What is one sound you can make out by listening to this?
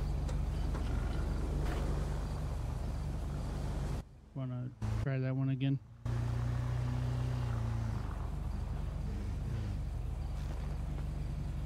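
A motorcycle engine idles and revs with a low rumble.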